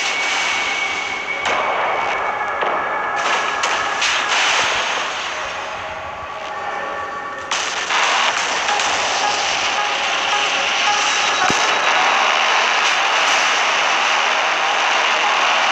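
Waves splash against a ship's hull.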